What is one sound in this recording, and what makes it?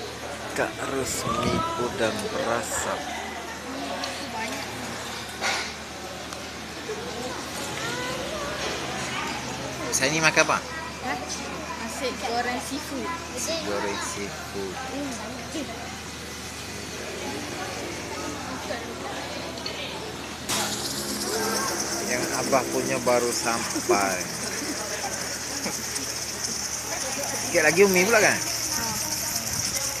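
Young men and children chatter nearby.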